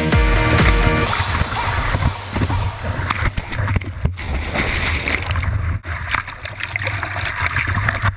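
Water splashes and rushes close by.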